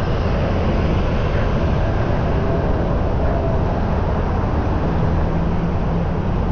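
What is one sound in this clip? City traffic hums and rolls by nearby.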